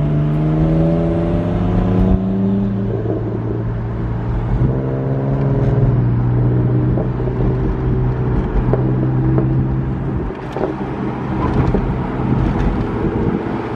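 Traffic rolls past outside.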